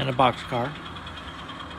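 A model train horn sounds twice in short blasts.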